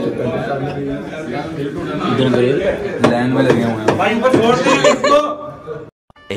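Several men talk loudly and excitedly close by.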